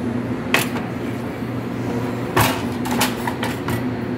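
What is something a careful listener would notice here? A metal drip tray clatters as it slides into place on an espresso machine.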